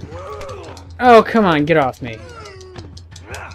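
A man grunts and cries out with effort, close by.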